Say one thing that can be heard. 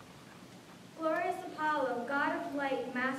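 A woman sings in an echoing hall.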